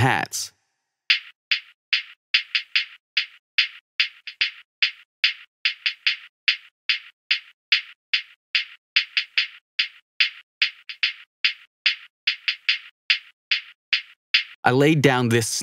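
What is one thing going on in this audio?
Sharp electronic ticks repeat in a fast, even rhythm.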